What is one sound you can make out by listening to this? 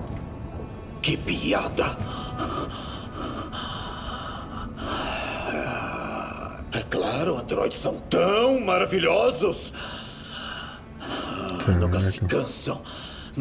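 A man speaks in a low, weary voice close by.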